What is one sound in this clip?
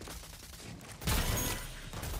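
A rifle fires a quick burst of loud shots.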